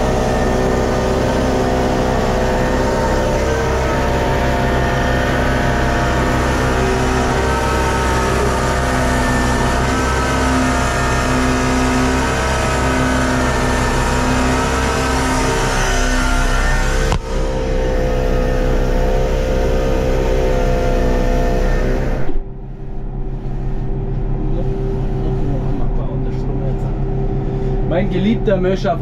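A tractor engine hums steadily and loudly.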